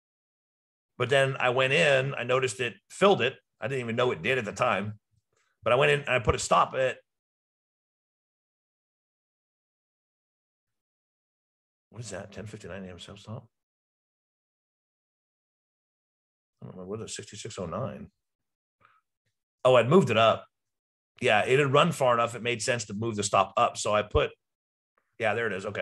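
A middle-aged man speaks calmly into a close microphone, pausing often.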